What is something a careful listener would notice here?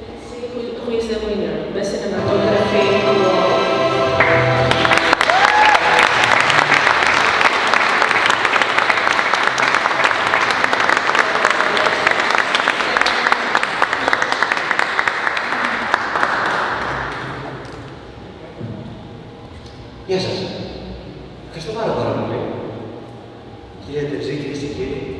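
A woman speaks into a microphone over loudspeakers in a large echoing hall.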